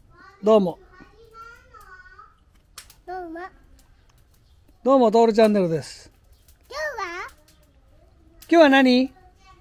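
A young child speaks brightly and close by.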